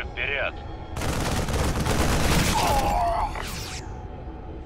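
A loud burst of gunfire and blasting roars for a couple of seconds.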